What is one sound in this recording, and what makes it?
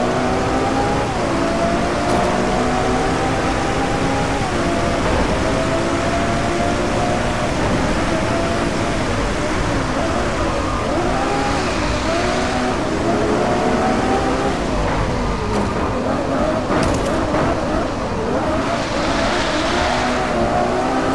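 A sports car engine roars and revs up and down through gear changes.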